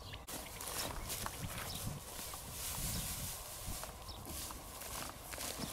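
Boots swish and crunch through long grass.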